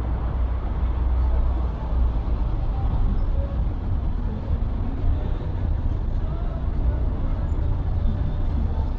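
Traffic rumbles steadily along a nearby street.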